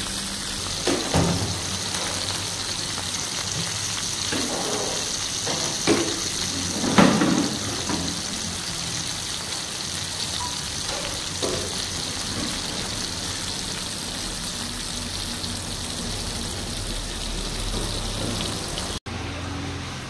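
Oil sizzles and bubbles steadily in a frying pan.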